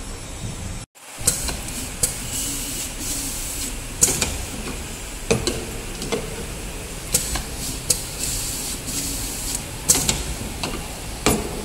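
A labelling machine whirs and clicks as it runs.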